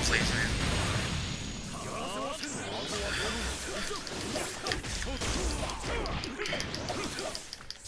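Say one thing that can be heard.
Punches and blasts thud and crash in a fighting game.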